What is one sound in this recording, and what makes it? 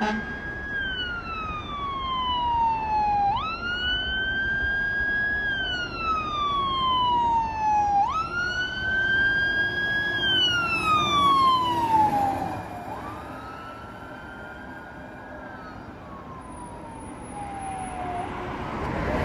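A fire truck siren wails, rising and falling as the truck approaches and passes.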